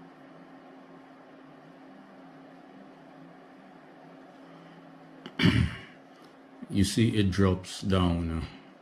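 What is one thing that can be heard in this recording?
A bench power supply hums softly and steadily.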